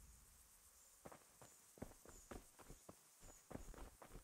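Footsteps crunch on a dirt path at a steady walking pace.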